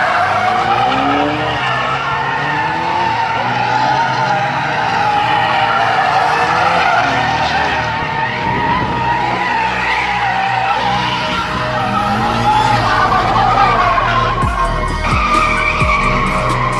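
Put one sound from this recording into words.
A crowd cheers and shouts outdoors.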